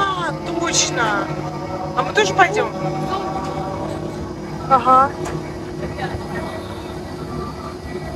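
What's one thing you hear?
A fairground ride whirs and rumbles below.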